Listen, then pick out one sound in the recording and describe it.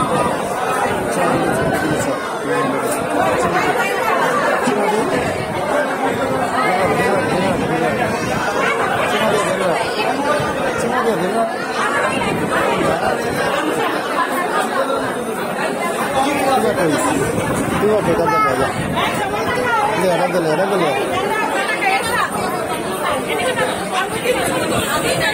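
A crowd of women and men chatter in a busy, echoing room.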